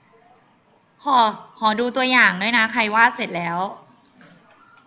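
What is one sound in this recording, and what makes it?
A woman speaks brightly over an online call.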